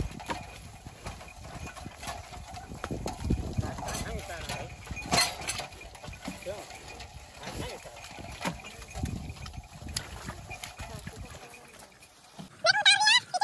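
A wooden cart rattles and creaks along a dirt track.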